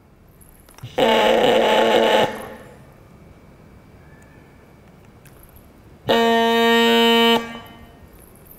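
A man blows short, loud, buzzing notes on a small wind instrument.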